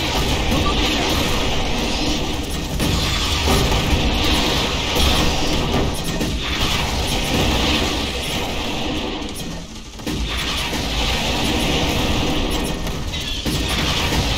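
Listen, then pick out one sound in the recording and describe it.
Explosions boom and rumble in a game battle.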